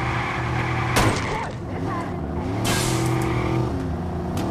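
Explosions burst with loud bangs.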